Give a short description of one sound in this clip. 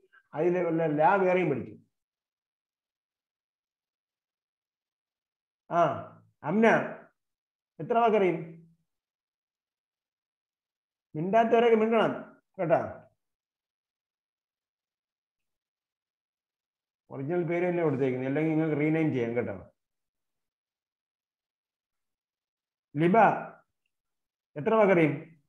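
An elderly man speaks in short, measured phrases through a microphone, with pauses between them.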